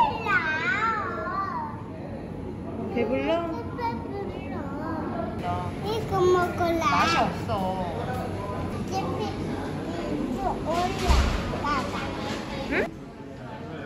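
A toddler girl babbles and squeals excitedly close by.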